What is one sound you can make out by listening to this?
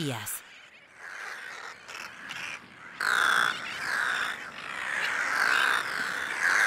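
Seabirds call in harsh, repeated cries.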